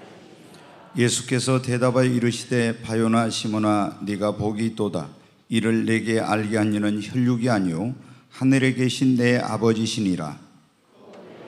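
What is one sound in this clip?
A middle-aged man reads aloud slowly and solemnly into a microphone.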